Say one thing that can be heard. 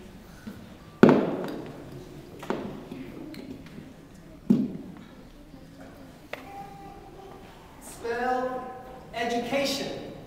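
A young boy speaks into a microphone.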